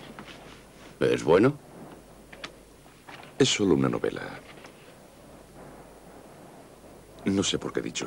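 A man speaks in short phrases nearby.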